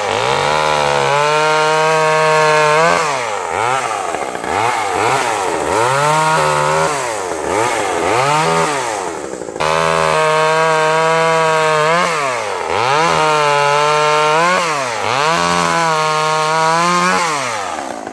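A chainsaw cuts through branches.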